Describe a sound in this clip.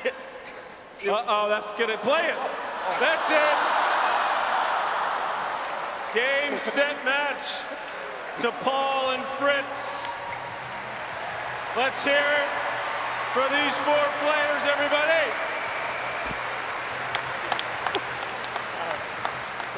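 A large crowd cheers and applauds in an open stadium.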